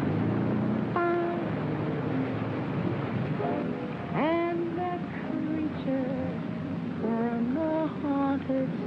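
A woman sings nearby.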